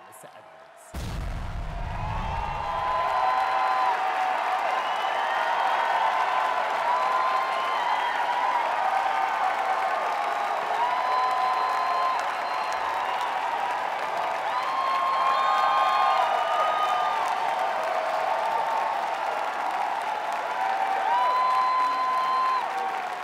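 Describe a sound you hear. A large crowd cheers and whoops loudly in a big echoing hall.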